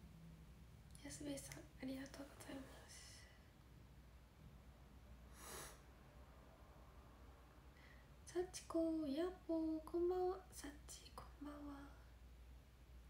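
A young woman talks softly and close to a microphone, in short bursts.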